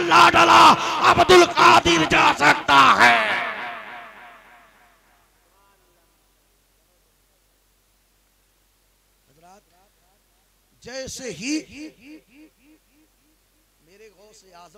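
A man sings loudly into a microphone, with a long echo in a large space.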